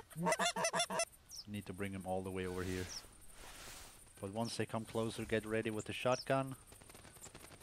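A duck call quacks loudly in short bursts.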